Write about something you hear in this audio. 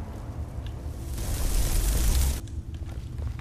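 A fire spell roars and crackles.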